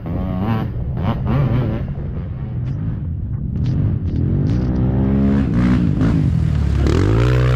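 A quad bike engine drones at a distance and grows louder as it approaches.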